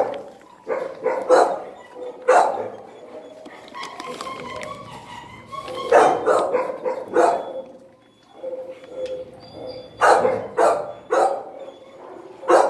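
A dog sniffs close by.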